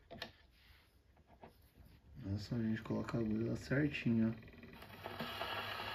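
A gramophone needle drops onto a record with a soft click.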